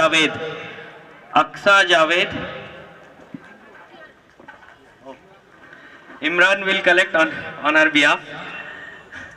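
A man announces loudly through a loudspeaker, echoing outdoors.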